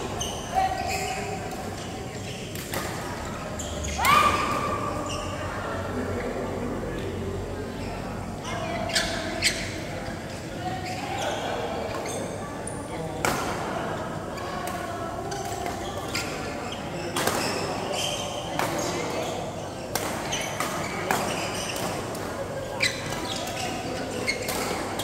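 Badminton rackets strike shuttlecocks with sharp pops in a large echoing hall.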